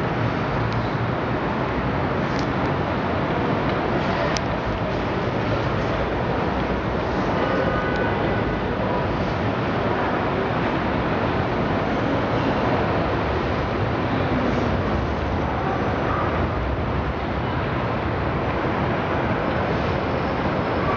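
Distant city traffic hums steadily far below.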